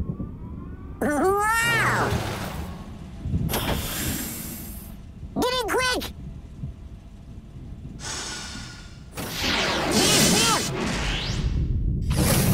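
A car engine revs up and roars.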